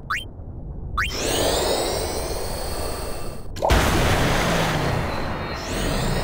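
A water spell surges and splashes loudly.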